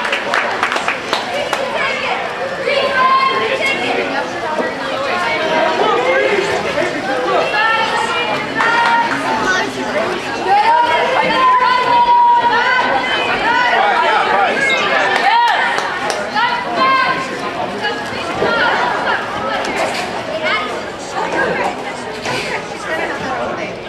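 A crowd of players and spectators shouts and calls out outdoors.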